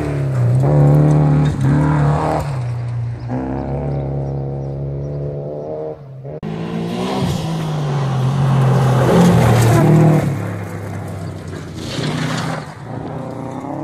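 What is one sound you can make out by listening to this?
Gravel sprays and crunches under spinning tyres.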